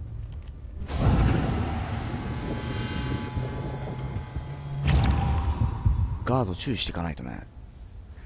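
A magical blast roars and crackles.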